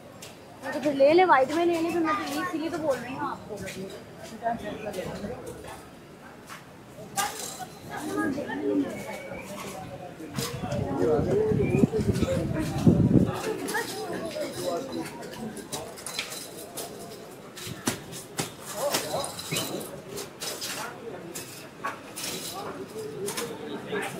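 A busy market crowd murmurs and chatters around, outdoors.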